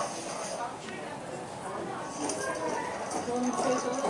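Several adults murmur and talk quietly nearby, indoors.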